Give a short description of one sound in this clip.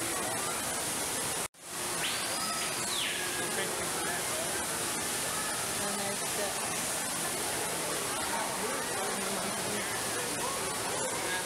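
A crowd of people chatters in the background of a large echoing hall.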